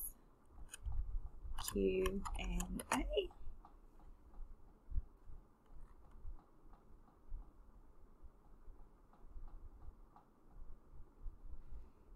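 Keys click on a keyboard as someone types.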